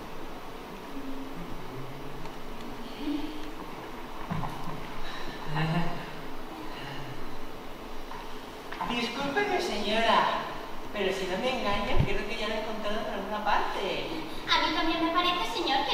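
A man speaks clearly on a stage in a large room with some echo.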